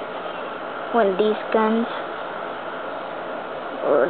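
Plastic toy figures click and tap as a hand handles them.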